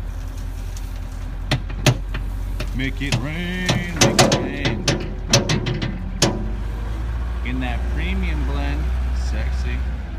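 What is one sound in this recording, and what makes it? A loader engine rumbles steadily.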